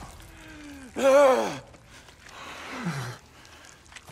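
A man screams in pain, then groans.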